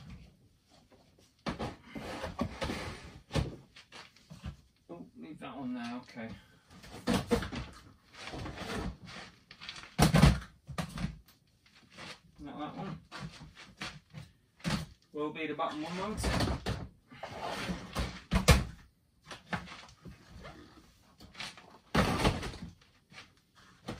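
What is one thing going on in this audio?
Plastic storage boxes knock and rattle as they are handled.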